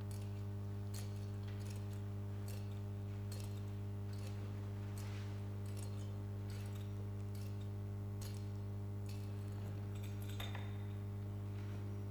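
A thurible's chains clink as incense is swung.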